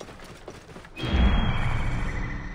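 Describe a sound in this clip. An eagle screeches as it swoops down.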